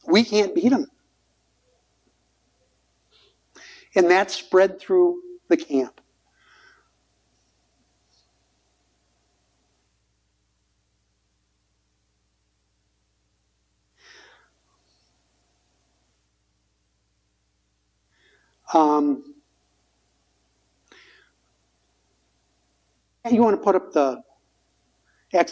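An older man reads aloud slowly and calmly, with long pauses.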